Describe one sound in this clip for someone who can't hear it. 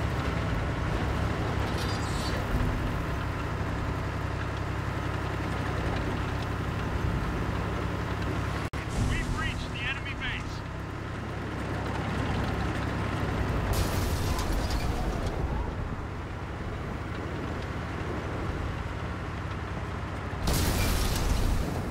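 Tank tracks clank and rattle over the ground.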